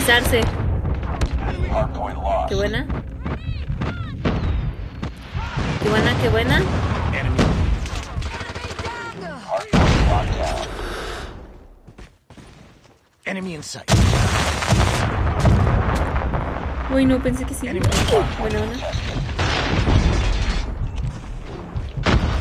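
Gunfire and explosions ring out from a video game.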